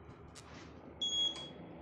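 A card reader beeps.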